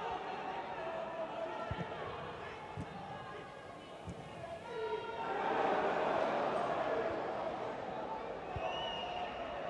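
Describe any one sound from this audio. Men shout to each other across an open, echoing stadium.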